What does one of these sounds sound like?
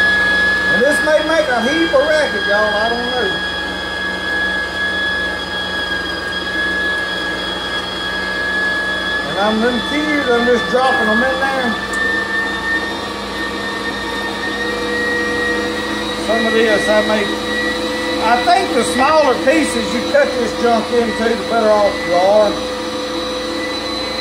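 An electric meat grinder hums steadily.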